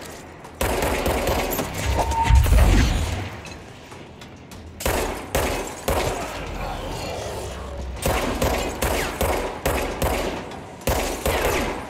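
Glass shatters and tinkles.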